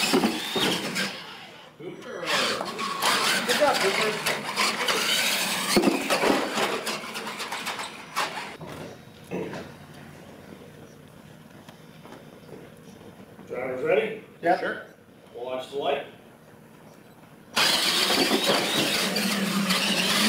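Small electric motors whine as toy trucks drive across a hard floor.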